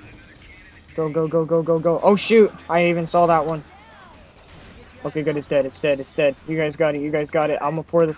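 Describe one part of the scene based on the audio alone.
Rapid gunfire rattles in quick bursts.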